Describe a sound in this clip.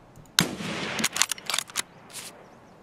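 A rifle bolt clicks and clacks as it is worked.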